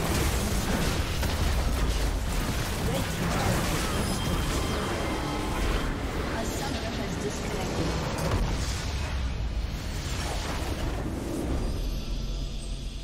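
Game spell and combat effects clash in a busy battle.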